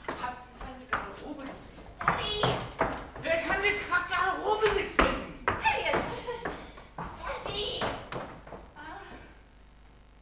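Several actors shout and sing loudly on a stage, heard from a distance.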